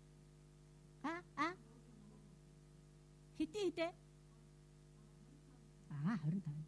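A middle-aged woman speaks haltingly into a microphone, heard through a loudspeaker.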